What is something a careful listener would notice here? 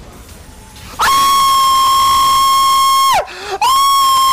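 A man yells loudly and at length into a microphone.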